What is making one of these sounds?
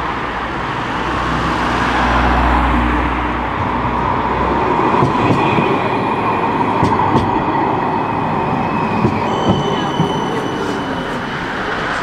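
A tram approaches and rumbles past close by.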